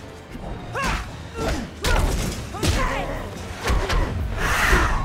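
A fighter grunts and cries out with each blow.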